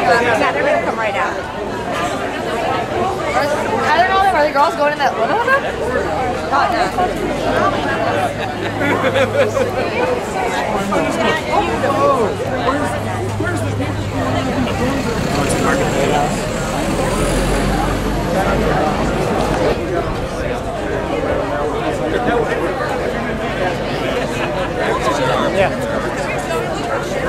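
A crowd of men and women chat and murmur all around, close by.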